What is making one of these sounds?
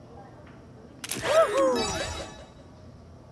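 A bright, sweeping chime rings out briefly.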